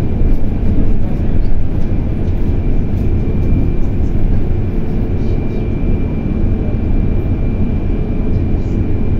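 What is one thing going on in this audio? A vehicle's engine rumbles steadily from inside as it drives along a street.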